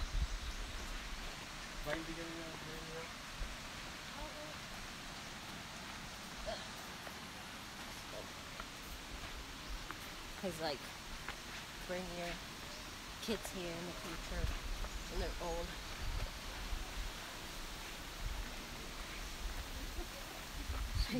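Footsteps crunch on a stony dirt path.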